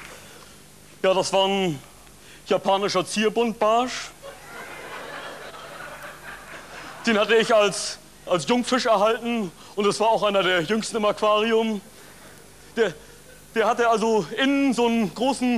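A man speaks loudly and with animation to an audience, heard through a microphone.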